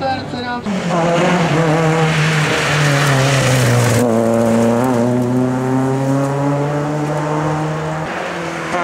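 A rally car engine roars loudly and revs through gear changes as the car speeds past.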